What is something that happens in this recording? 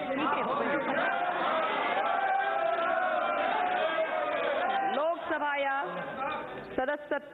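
A crowd of men shout and clamour over one another in a large echoing hall.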